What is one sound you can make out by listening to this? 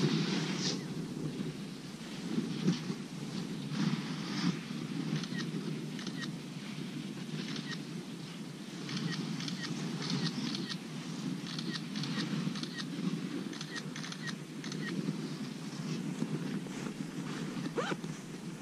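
Gloved hands rustle and handle gear close by.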